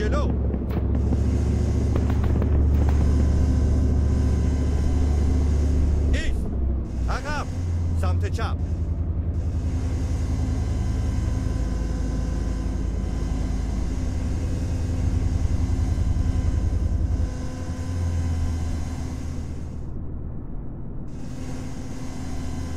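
A heavy engine rumbles low and steadily throughout.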